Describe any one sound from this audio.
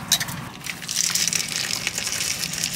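Crunchy granola pours and rattles out of a jar.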